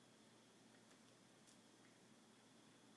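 A cat's paw taps lightly on a wooden floor.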